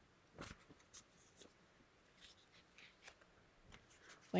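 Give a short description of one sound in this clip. A young woman reads aloud softly, close by.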